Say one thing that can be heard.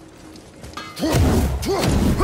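A loud magical blast bursts with a deep boom.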